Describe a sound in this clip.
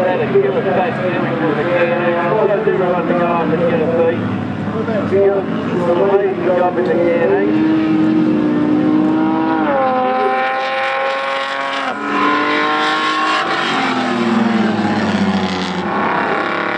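Several racing car engines roar and rev, rising and falling in pitch.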